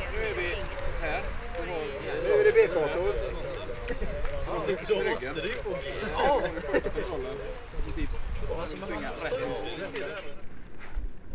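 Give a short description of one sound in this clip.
A man speaks with animation, close by, outdoors.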